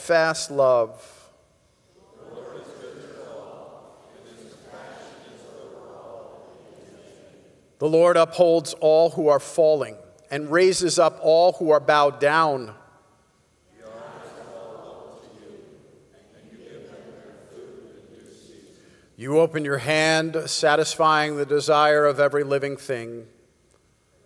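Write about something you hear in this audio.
A middle-aged man reads out aloud through a microphone in a reverberant hall.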